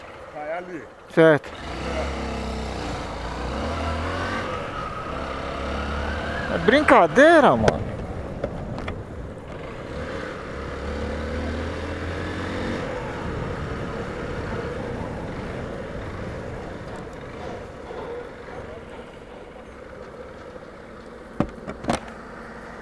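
A motorcycle engine hums and revs as it rides along a street.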